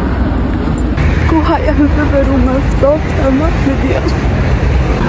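A young woman speaks with animation.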